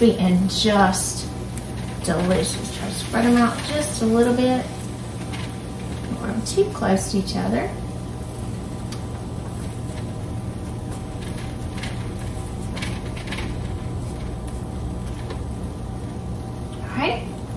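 A brush dabs softly on a baking tray.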